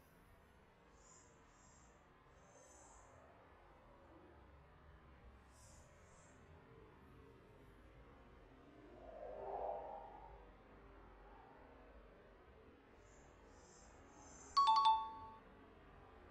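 Small birds chirp softly in short high bursts.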